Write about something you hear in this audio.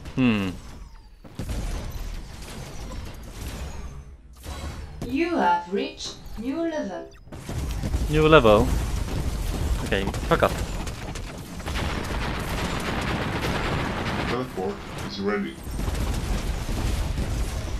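Electronic laser guns fire in rapid bursts.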